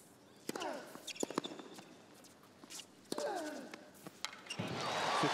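A tennis ball is struck hard with a racket several times.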